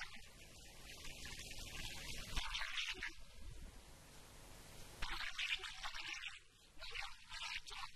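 A man recites loudly and with feeling into a microphone.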